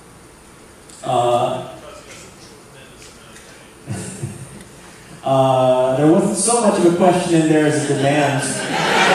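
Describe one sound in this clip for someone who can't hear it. A man speaks with animation into a microphone, heard over loudspeakers in a large hall.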